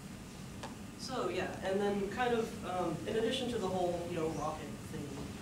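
A man speaks to an audience in a large echoing hall, heard through a microphone.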